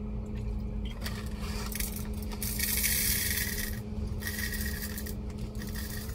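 Sugar granules pour and rustle into a cup.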